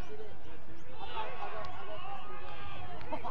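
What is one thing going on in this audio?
A crowd of spectators cheers outdoors.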